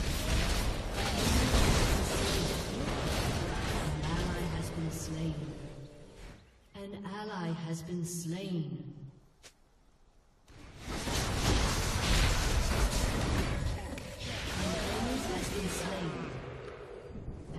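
Game spells and weapon hits clash in a fast fight.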